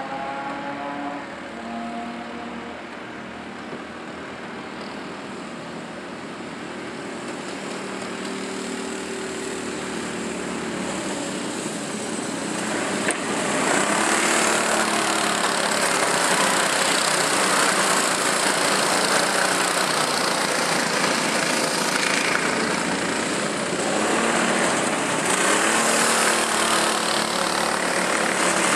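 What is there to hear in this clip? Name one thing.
Go-kart engines buzz and whine, growing louder as the karts race past close by.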